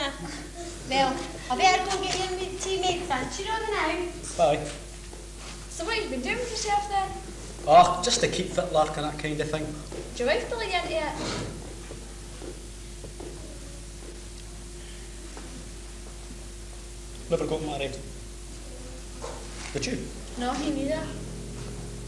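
A woman speaks with animation in an echoing hall.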